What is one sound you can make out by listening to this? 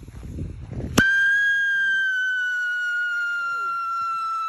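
A small rocket motor ignites with a sudden burst and then whistles loudly and steadily, slowly dropping in pitch.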